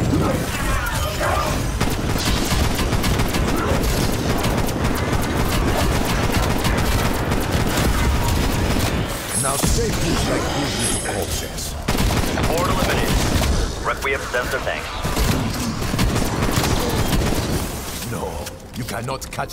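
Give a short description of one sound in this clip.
A rapid-fire gun shoots in fast, loud bursts.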